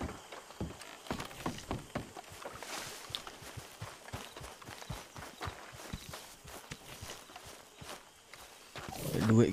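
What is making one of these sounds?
Footsteps crunch steadily on grass and dirt.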